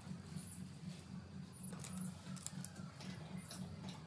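A metal tape measure rattles and clicks.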